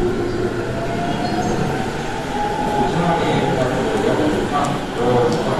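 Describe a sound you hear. A train rumbles and rattles past along the platform.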